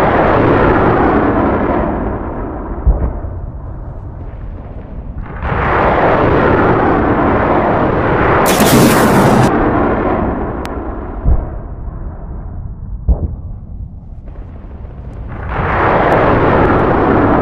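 A jet engine roars, swelling and fading as aircraft pass.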